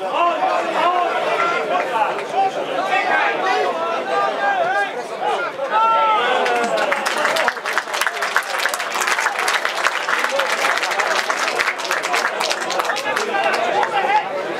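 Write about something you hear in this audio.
A crowd of spectators talks and calls out nearby, outdoors.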